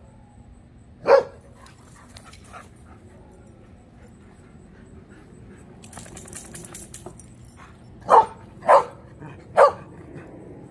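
A dog barks loudly a few times.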